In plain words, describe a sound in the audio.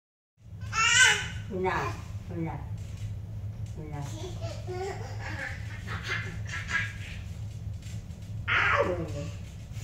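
A baby squeals and babbles loudly close by.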